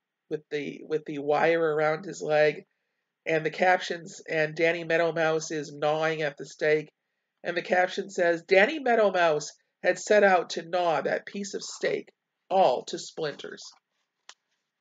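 A middle-aged woman reads aloud calmly, close to a microphone.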